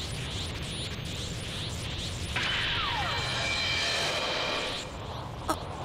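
A fiery energy aura roars and crackles.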